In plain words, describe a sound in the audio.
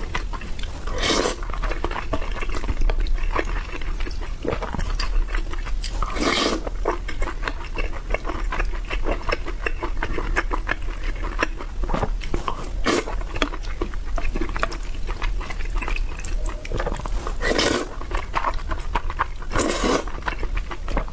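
A young woman slurps food loudly from a spoon.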